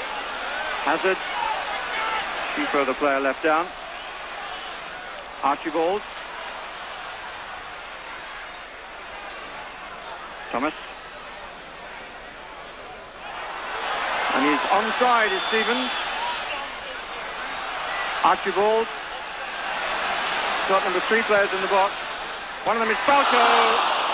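A large stadium crowd murmurs, then swells into a loud roar.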